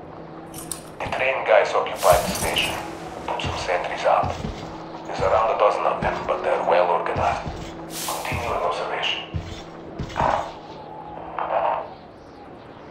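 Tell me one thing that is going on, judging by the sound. A man's voice speaks calmly from a tape recording.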